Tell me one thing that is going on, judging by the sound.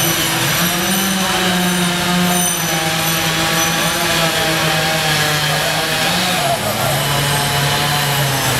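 An excavator engine hums steadily nearby.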